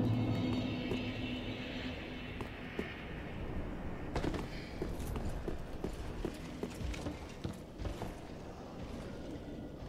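Footsteps tread on stone floors.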